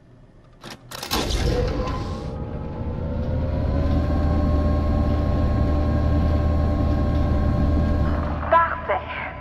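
A machine starts with a low rumble and a rising whine.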